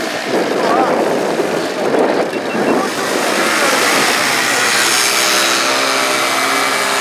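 A paramotor engine buzzes loudly overhead, growing steadier as it passes close by.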